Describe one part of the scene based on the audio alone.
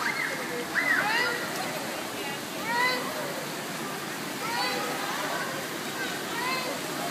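Water splashes as a man pulls a child through the pool.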